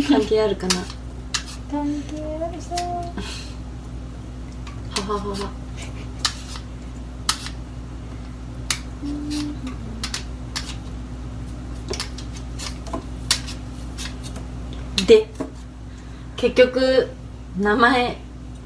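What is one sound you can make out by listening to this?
A knife scrapes and clicks while peeling fruit.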